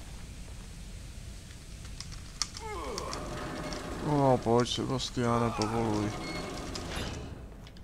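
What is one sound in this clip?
A metal valve wheel creaks as it is turned.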